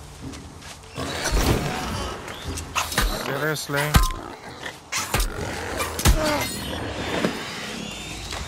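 A wild boar squeals and grunts.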